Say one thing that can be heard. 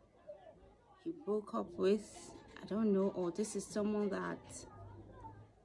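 A woman speaks softly close to the microphone.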